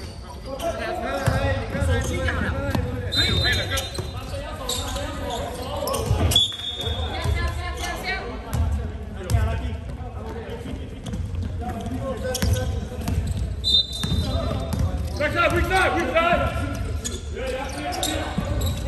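A basketball bounces on a hard floor, echoing in a large hall.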